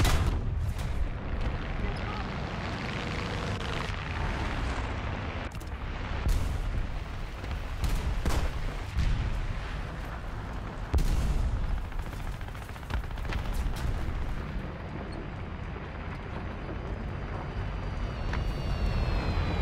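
Tank tracks clank and grind over sand.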